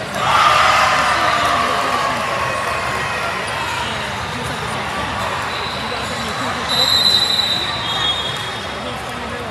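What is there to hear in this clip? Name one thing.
A crowd of girls and adults chatters and cheers in a large echoing hall.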